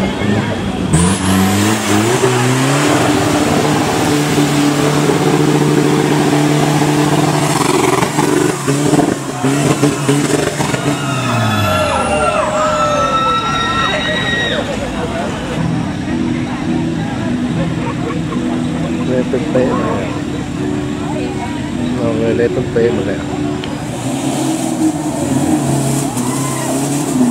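A truck engine roars loudly, revving hard.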